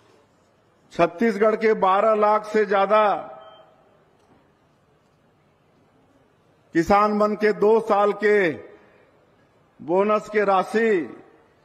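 A man speaks loudly through a microphone in slow, drawn-out phrases.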